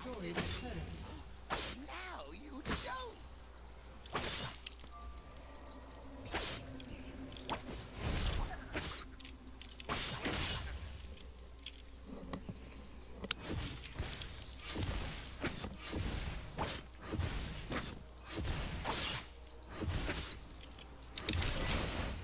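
Game characters clash with sharp hits.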